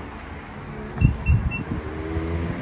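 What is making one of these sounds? A car's tailgate beeps three times.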